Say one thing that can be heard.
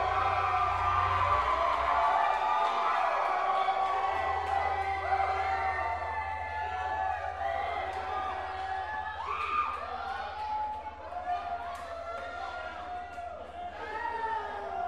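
A drummer taps lightly on drums and cymbals.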